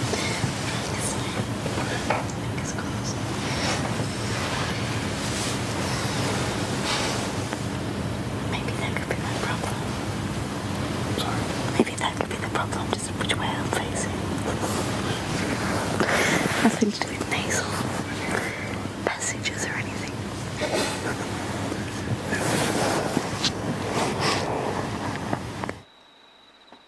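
A young woman talks quietly and sleepily nearby.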